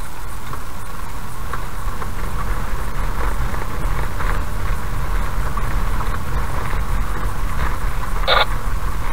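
Tyres crunch and rattle over a rough gravel road.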